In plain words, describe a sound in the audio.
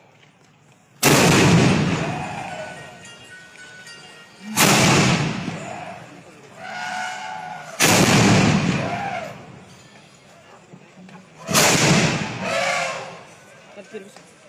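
Cannons fire one after another with loud booming blasts that echo and fade.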